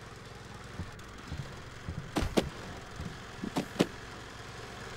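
Hands grab and thump against wooden roof boards while climbing.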